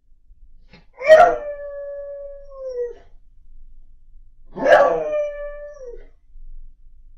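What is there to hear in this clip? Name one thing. A dog howls loudly, twice.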